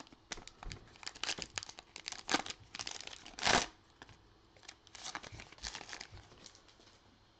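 A foil wrapper crinkles and tears close by.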